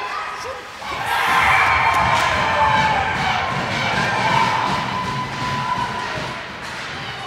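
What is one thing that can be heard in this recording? A crowd cheers loudly after a goal.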